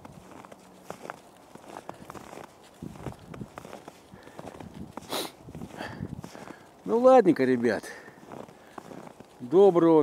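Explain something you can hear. A dog's paws crunch on snow.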